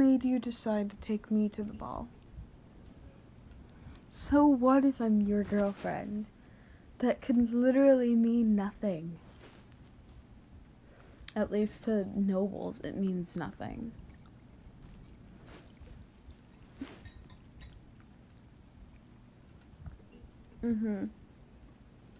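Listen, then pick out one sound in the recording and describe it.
A young woman speaks softly and playfully, close to a microphone, in short phrases with pauses.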